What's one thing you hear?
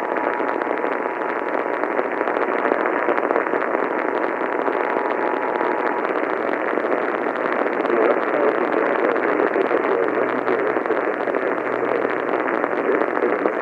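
A small radio hisses with steady static.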